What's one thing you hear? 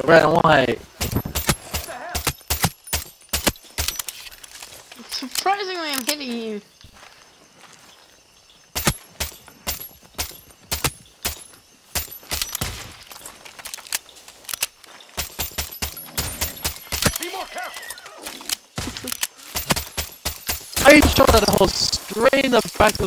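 A silenced pistol fires in quick bursts of shots.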